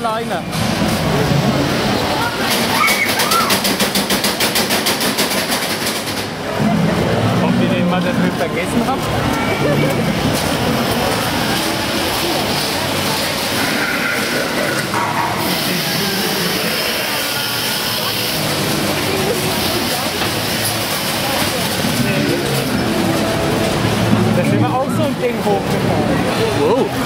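A fairground ride rattles and clanks as it moves.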